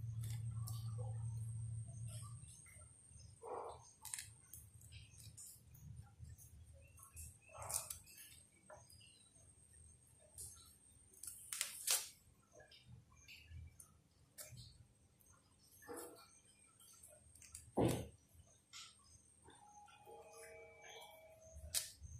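Fingers peel and tear fruit flesh with soft wet rustles.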